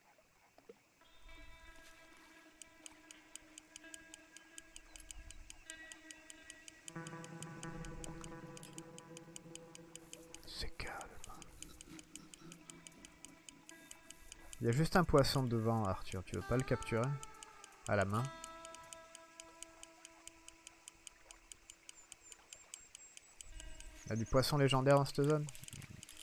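A fishing reel clicks as the line is wound in.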